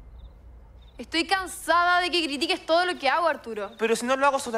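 A young woman speaks with irritation close by.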